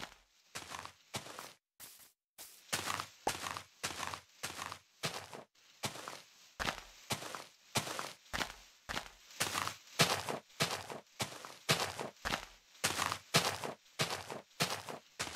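Leaves rustle and crunch in quick repeated bursts as a game character breaks through them.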